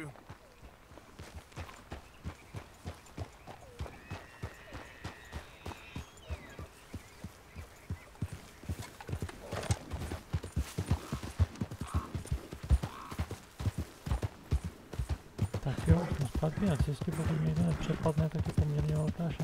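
Horse hooves clop steadily on the ground.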